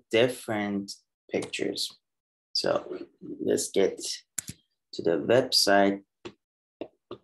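A young man speaks calmly into a microphone over an online call.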